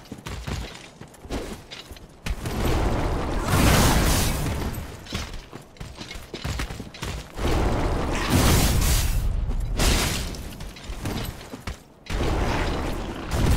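Armour clanks as a knight runs and rolls.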